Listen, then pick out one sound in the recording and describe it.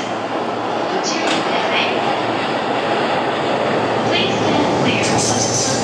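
An electric train rumbles past on the tracks nearby.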